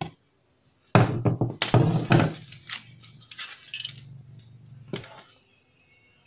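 A small metal part knocks and rattles as it is handled on a workbench.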